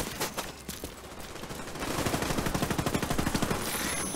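Footsteps crunch on debris.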